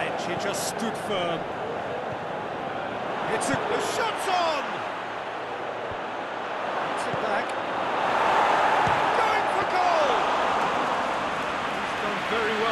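A large crowd roars steadily, swelling louder toward the end.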